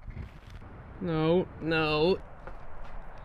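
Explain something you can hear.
A cat meows close by.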